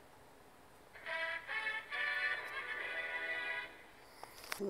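A short bright musical jingle plays through a small loudspeaker.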